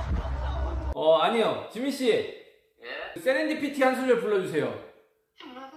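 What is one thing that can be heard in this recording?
A young man talks animatedly close to a microphone.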